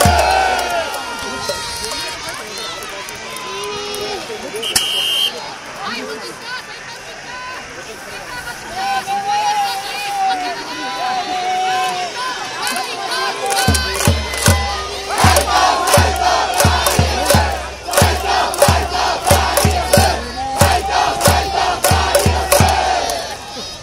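A large crowd chants and cheers.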